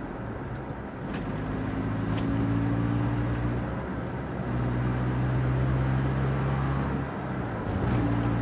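Traffic rumbles on the road nearby.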